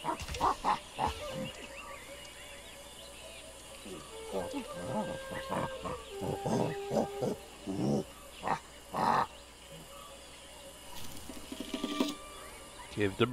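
A chimpanzee rustles through leafy undergrowth.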